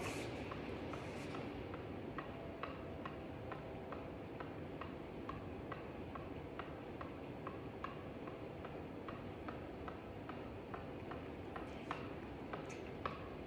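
A tennis ball taps repeatedly on a racket's strings.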